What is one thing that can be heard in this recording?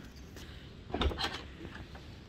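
A car door latch clicks.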